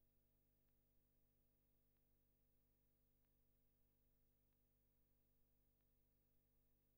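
A harness horse trots on a dirt track, pulling a sulky.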